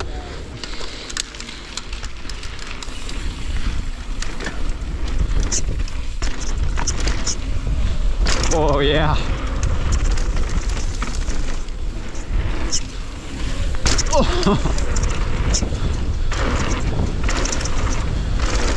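Knobby tyres crunch and rumble over a dirt trail.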